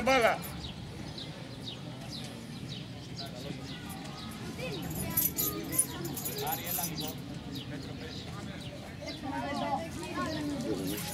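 Children call out to each other across an open outdoor field.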